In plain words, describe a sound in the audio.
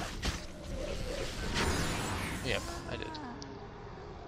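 A magic spell crackles and whooshes.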